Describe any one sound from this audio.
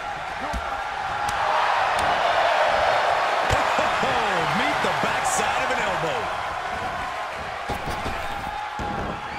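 A large crowd cheers and roars loudly in a big arena.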